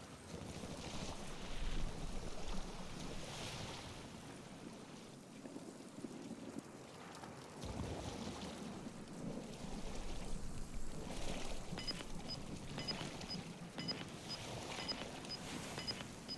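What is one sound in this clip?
Water splashes as a swimmer paddles through it.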